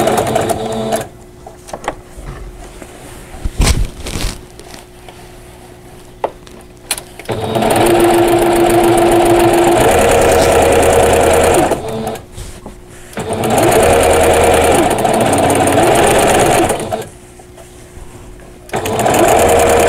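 Fabric rustles as hands slide it along.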